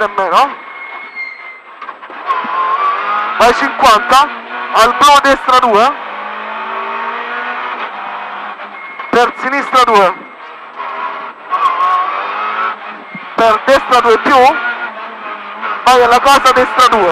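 A car engine revs hard, rising and falling through the gears.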